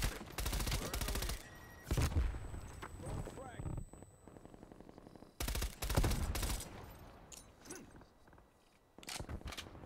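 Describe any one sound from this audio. Rapid bursts of automatic gunfire crack loudly.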